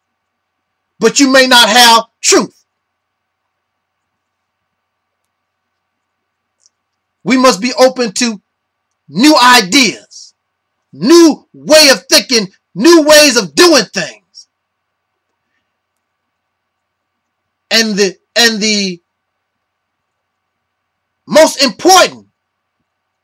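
A man speaks slowly and calmly close to a microphone, with long pauses.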